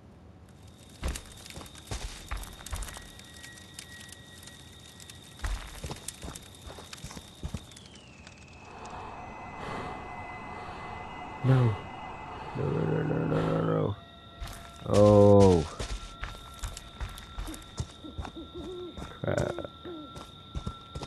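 Heavy footsteps crunch on dry leaves.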